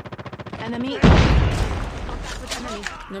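An explosion booms loudly and rumbles away.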